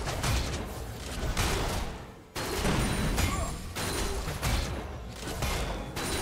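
Game spell effects crackle and boom in a busy battle.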